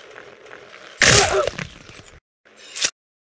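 A body crashes onto sharp spikes with a loud, wet squelch.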